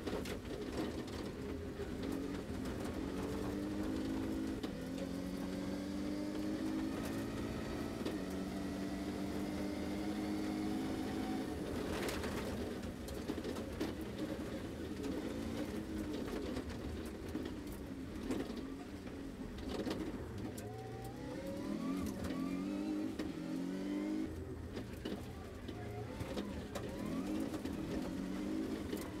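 A rally car engine roars and revs hard, rising and falling with gear changes.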